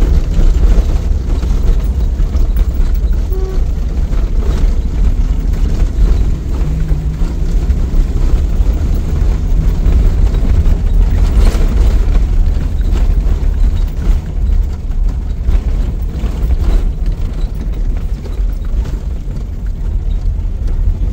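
A vehicle engine rumbles low and steady while driving.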